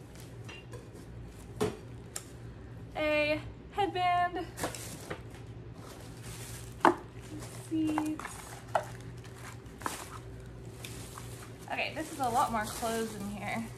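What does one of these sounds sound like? Plastic bags and items crinkle and clatter as they are sorted.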